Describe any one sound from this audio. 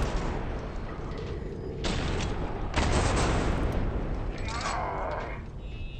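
Explosions boom loudly with crackling debris.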